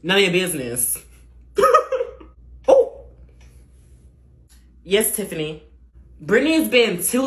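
A young woman speaks with animation close to a microphone, in short bursts.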